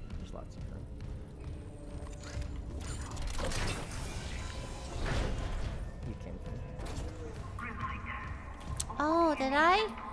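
Heavy boots thud on a metal floor.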